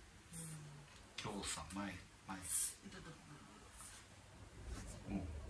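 Hands rub softly against a fleece top.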